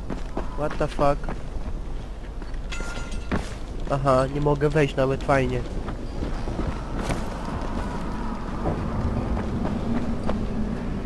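Footsteps thud quickly on hard ground as someone runs.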